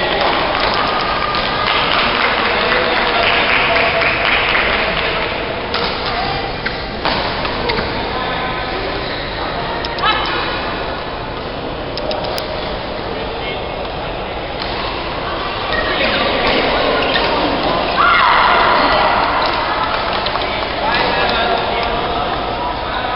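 Shuttlecocks are struck with rackets, giving sharp pops that echo in a large hall.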